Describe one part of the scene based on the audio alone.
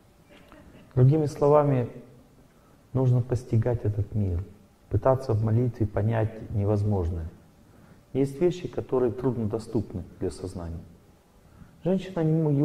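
A middle-aged man speaks calmly into a microphone in a large hall.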